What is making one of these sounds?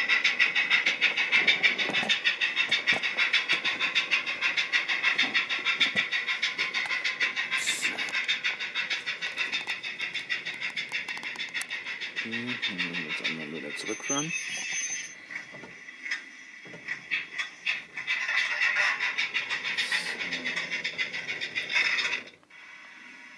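A model train rattles along the track with a fast, steady clicking.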